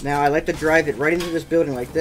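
A pickaxe clangs against metal.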